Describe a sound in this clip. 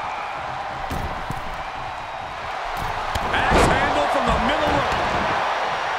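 A crowd cheers loudly throughout.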